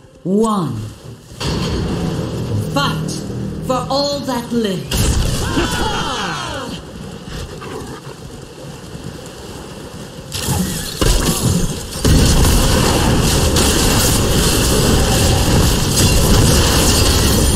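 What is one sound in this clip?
Magic spells blast and weapons clash in a hectic fantasy battle.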